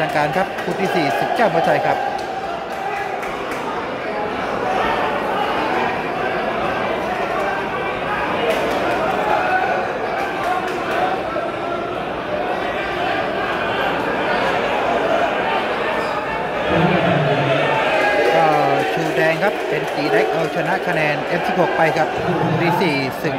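A crowd of spectators chatters and calls out in a hall.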